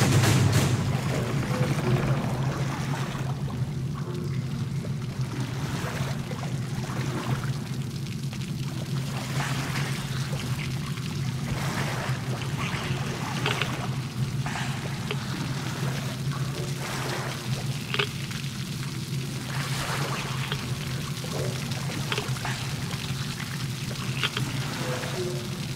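An oar splashes in water as a boat is rowed.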